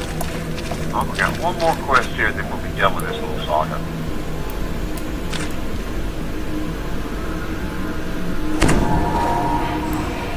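Magical spell effects chime and whoosh.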